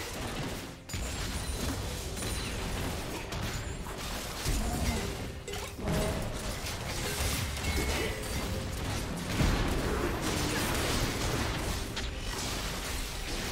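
Weapons clash and strike repeatedly.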